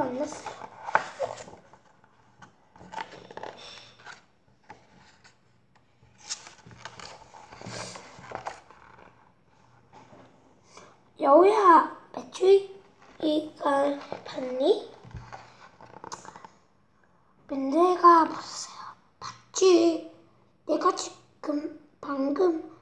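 A young child reads aloud close by.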